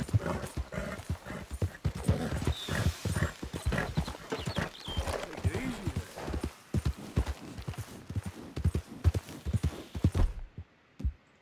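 A horse gallops with hooves thudding on soft ground.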